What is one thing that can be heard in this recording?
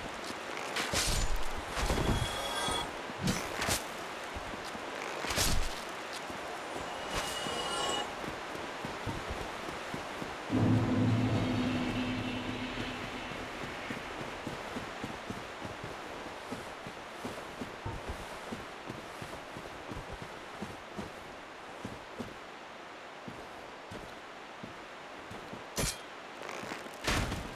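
Armoured footsteps thud on stone and grass.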